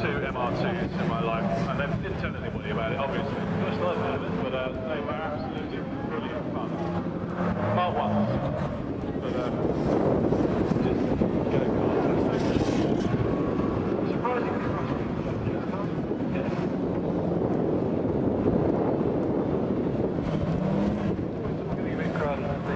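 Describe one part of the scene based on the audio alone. Tyres skid and scrape over loose dirt.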